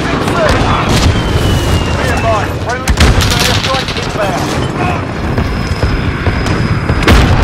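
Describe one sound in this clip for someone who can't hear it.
Gunshots crack sharply now and then.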